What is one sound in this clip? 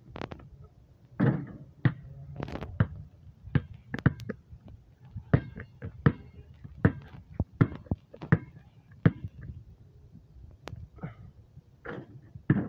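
A basketball hits a backboard and rim.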